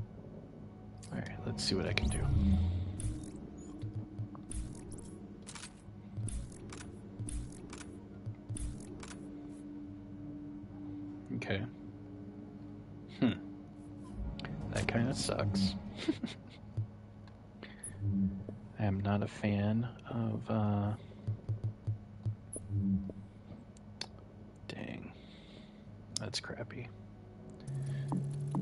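Short electronic clicks and blips sound as game menus open and change.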